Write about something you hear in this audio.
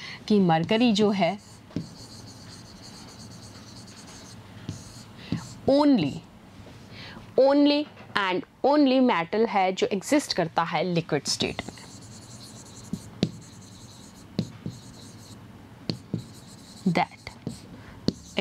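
A marker squeaks on a board as it writes.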